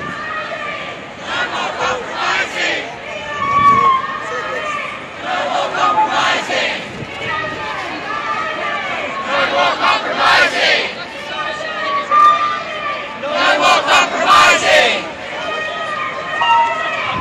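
A crowd of protesters chants loudly in unison outdoors.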